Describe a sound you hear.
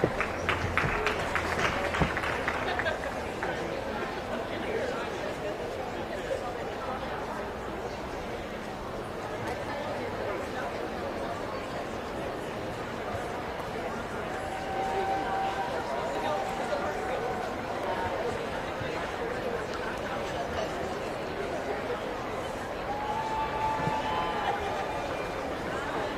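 A crowd murmurs and chatters in a large, open space.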